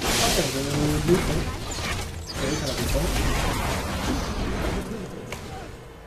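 Magic spells whoosh and crackle during a fast fight.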